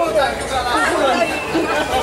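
A middle-aged man laughs nearby.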